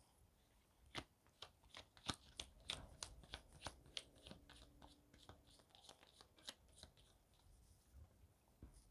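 Playing cards shuffle and tap softly.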